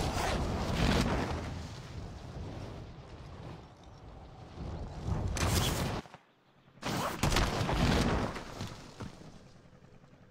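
Wind rushes loudly during a fast fall through the air.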